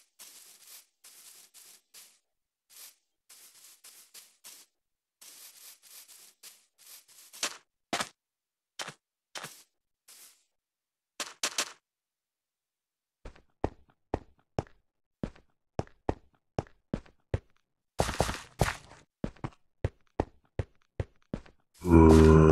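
Footsteps crunch steadily over grass and stone.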